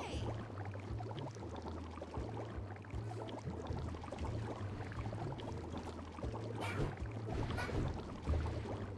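Thick liquid bubbles and splashes as something swims steadily through it.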